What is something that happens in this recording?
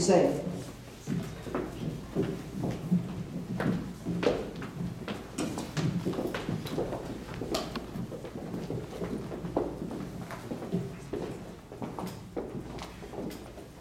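Footsteps shuffle and tap on a stage.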